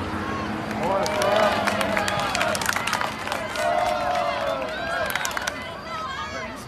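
A crowd of spectators nearby cheers and shouts excitedly outdoors.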